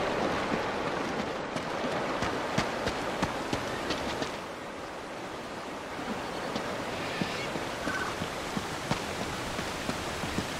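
A waterfall rushes steadily nearby.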